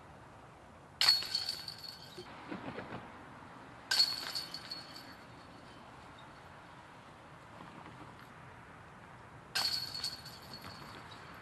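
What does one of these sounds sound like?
A flying disc strikes metal chains, which rattle and jingle.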